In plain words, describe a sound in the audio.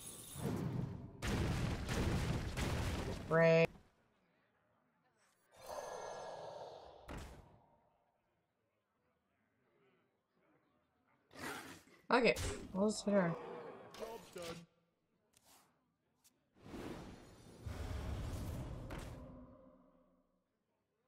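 Magical game effects whoosh and chime in bursts.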